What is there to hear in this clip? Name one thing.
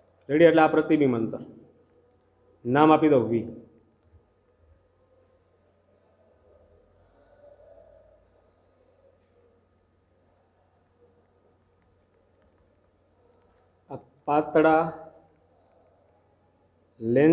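A man speaks calmly into a close microphone, in short phrases with long pauses.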